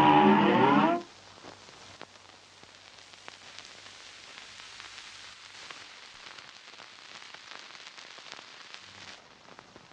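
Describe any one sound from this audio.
Faint old-record crackle and hiss play softly.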